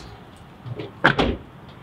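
A car door slams shut with a heavy thud.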